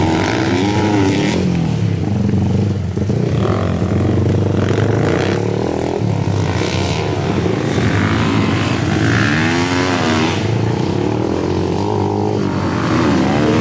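Dirt bike engines rev and whine up and down, loud and close.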